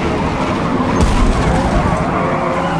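A car thuds in a brief collision.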